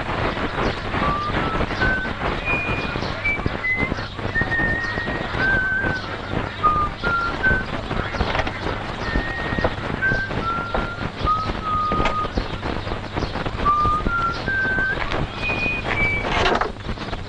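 A boy whistles a tune nearby.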